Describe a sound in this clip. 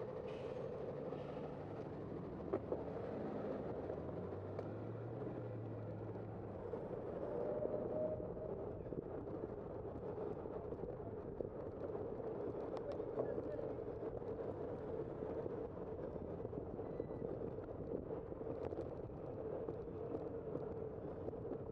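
Tyres roll and rumble on the road surface.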